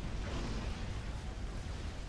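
Laser weapons fire with sharp zapping bursts.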